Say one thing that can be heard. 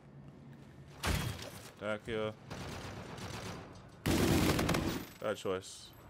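Gunfire bursts loudly in a video game.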